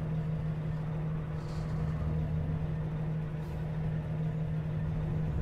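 A truck engine hums steadily at low speed.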